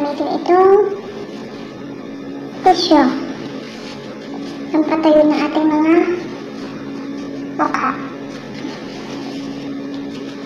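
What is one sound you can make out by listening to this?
Paper crinkles in a woman's hands.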